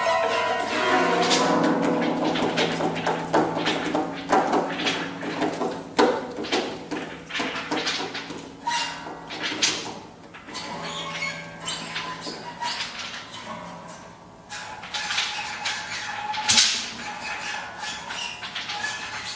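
A cello plays a low sustained line.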